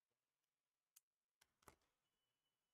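A phone is handled with a few soft knocks close by.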